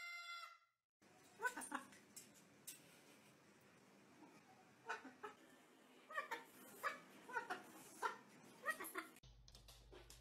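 A cockatoo squawks and chatters.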